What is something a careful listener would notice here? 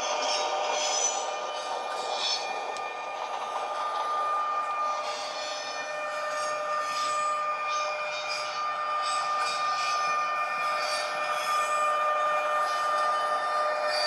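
A model train rolls steadily along the track with a whirring motor hum.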